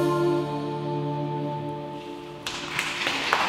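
An acoustic guitar chord rings out and stops.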